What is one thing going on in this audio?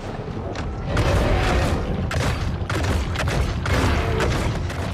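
A large fish thrashes and bites with loud splashing crunches.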